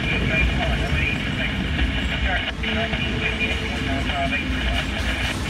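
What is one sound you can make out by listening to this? A long freight train rumbles and clatters past close by.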